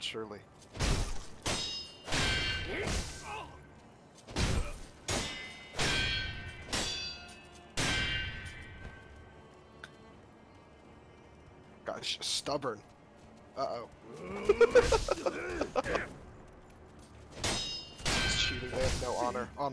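Swords clash with sharp ringing metallic strikes.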